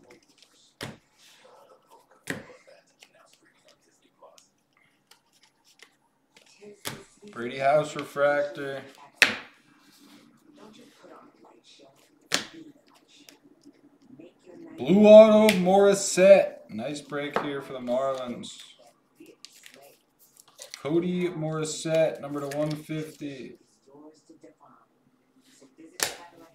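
Trading cards rustle and slap as they are shuffled by hand.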